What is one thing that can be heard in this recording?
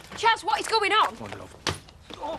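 A young woman screams loudly and shrilly.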